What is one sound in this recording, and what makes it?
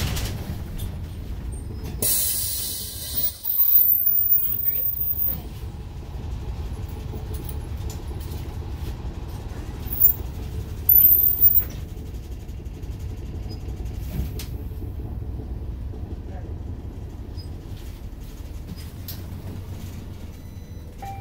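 A bus rattles and creaks as it rolls along.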